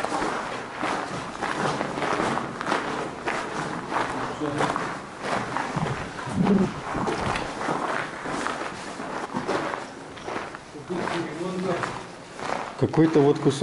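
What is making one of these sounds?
Footsteps crunch on a rough floor in an echoing tunnel.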